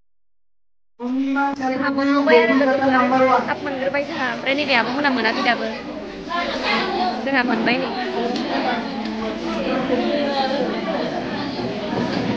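A young woman speaks close by, calmly.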